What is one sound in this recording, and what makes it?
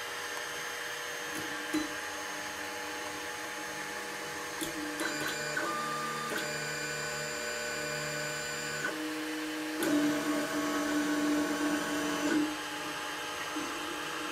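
Stepper motors whine and hum in changing pitches.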